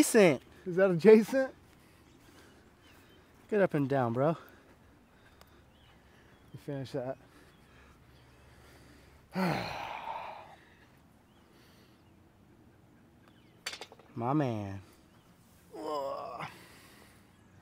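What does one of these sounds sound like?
A middle-aged man talks casually nearby.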